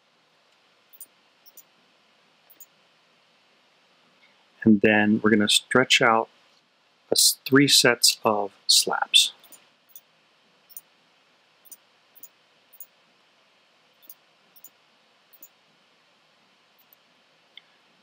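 Blocks are placed with soft, short clicks.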